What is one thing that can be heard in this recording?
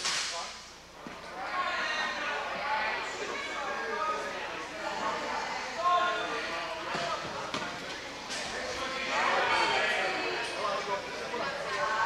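Wheelchair wheels roll and squeak on a hard floor.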